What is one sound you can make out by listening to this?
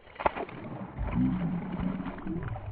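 A fish splashes and thrashes at the surface of the water.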